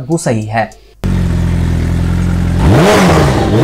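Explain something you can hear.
A motorcycle engine idles with a steady rumble.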